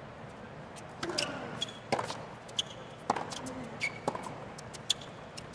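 A tennis ball is struck back and forth with sharp pops of rackets.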